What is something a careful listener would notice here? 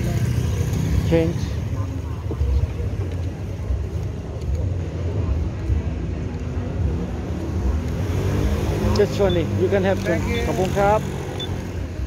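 Two men talk with each other nearby, outdoors.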